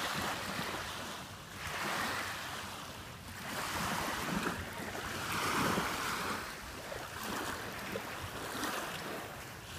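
Small waves lap gently onto a sandy shore.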